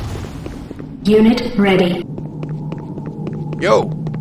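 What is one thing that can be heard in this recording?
Footsteps tap on a metal floor.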